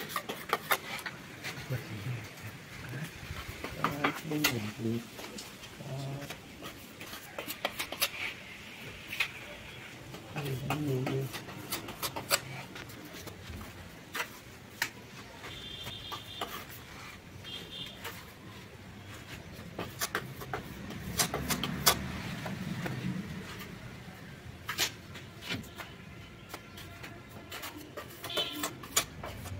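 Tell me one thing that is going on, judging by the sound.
A metal trowel scrapes and taps against wet cement plaster.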